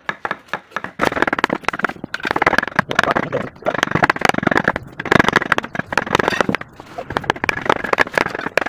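A hand chisel scrapes and pares wood.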